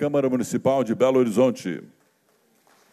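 A man speaks loudly into a microphone in a large hall.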